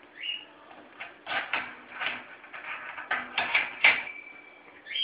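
A parrot's beak taps and rattles against a metal perch.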